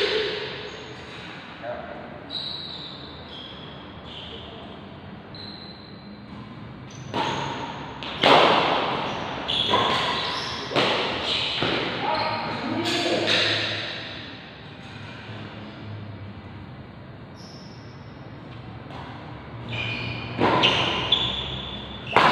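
Shoes squeak and scuff on a court floor.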